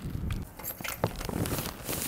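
Keys jingle in a lock.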